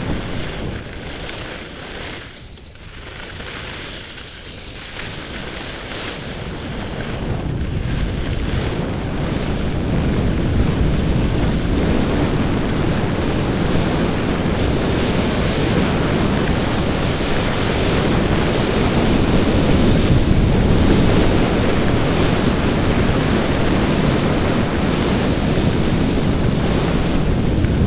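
Skis hiss and scrape steadily over snow, growing louder as the speed picks up.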